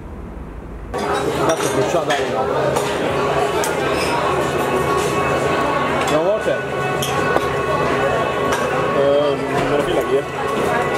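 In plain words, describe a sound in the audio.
A crowd of people chatter in a busy room.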